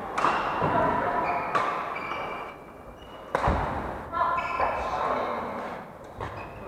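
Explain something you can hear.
Rackets sharply smack a shuttlecock back and forth in a large echoing hall.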